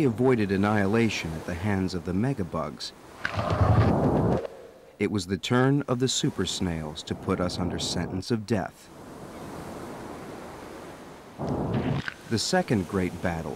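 Waves crash and roar onto a shore.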